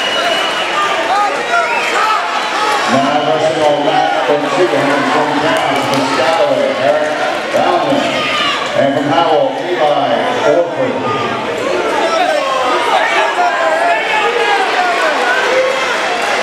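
A large crowd shouts and cheers in a big echoing gym.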